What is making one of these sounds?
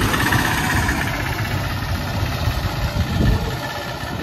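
An auto rickshaw's engine putters close by.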